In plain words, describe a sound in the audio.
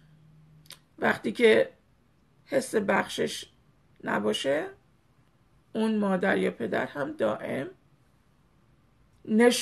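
A middle-aged woman speaks close to the microphone with animation, in short bursts with pauses.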